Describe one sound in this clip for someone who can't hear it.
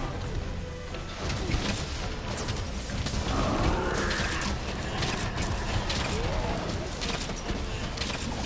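Fiery explosions burst with loud booms.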